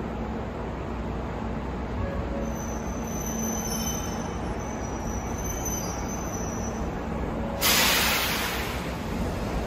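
A stopped train hums steadily in an echoing underground station.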